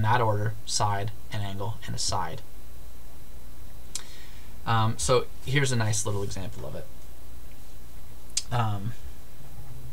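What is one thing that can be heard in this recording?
A man speaks calmly into a close microphone, explaining in pauses.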